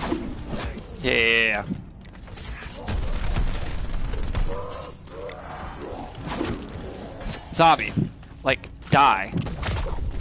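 A monster growls and snarls loudly.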